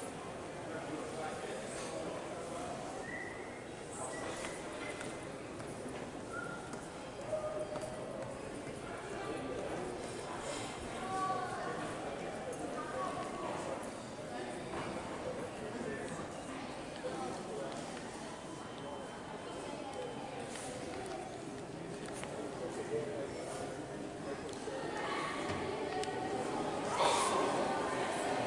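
A crowd of visitors murmurs and chatters in a large echoing hall.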